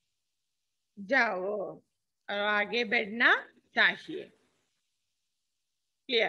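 A woman speaks calmly into a headset microphone, in short phrases.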